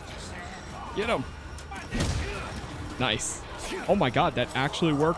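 Men groan and shout close by.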